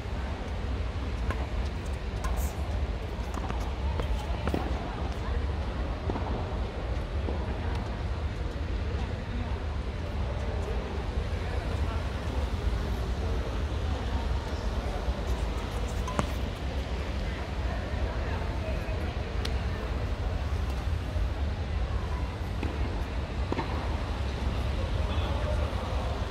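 Sounds echo around a large hall.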